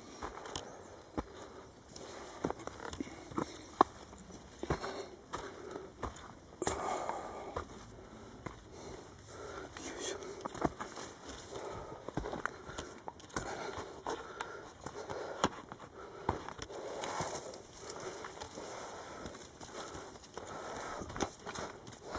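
Footsteps crunch on a rocky, leafy trail.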